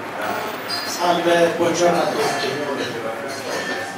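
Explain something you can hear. A man speaks calmly into a handheld microphone.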